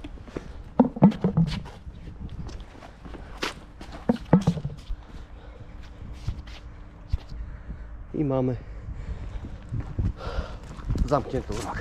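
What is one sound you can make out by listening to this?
Footsteps scuff on stone paving.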